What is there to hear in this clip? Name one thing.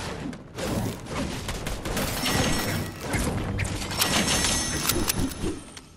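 A pickaxe swings and strikes with sharp thuds.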